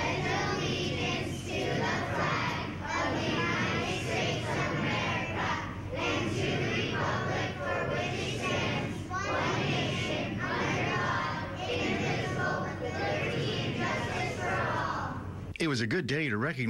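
A group of young children recite together in unison, echoing in a large hall.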